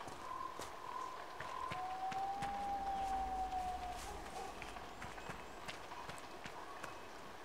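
Footsteps crunch steadily over rough ground.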